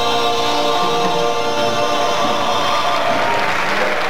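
A woman sings into a microphone in a large room.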